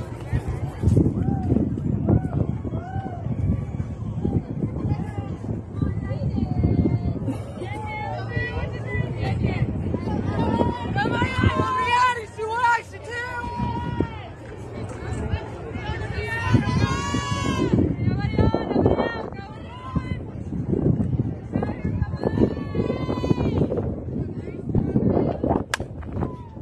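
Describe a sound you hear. Young women shout and cheer from across an open field.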